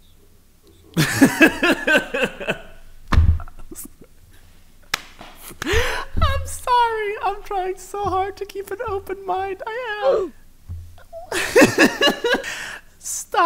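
A young man laughs loudly and heartily close to a microphone.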